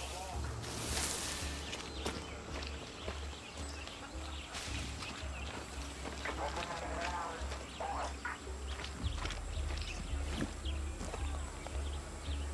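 Leafy plants rustle and swish as someone pushes through them.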